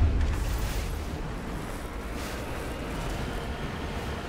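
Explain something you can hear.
A heavy vehicle's engine rumbles as it drives over rough ground.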